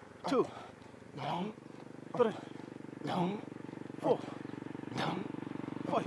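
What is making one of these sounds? A young man grunts with effort in short, repeated bursts close by.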